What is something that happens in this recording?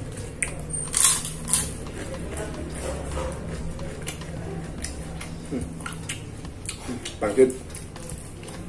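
Crisp crackers crunch and crackle as a man bites them.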